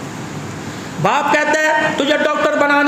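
A middle-aged man speaks through a microphone.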